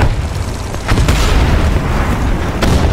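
A large explosion bursts and rumbles.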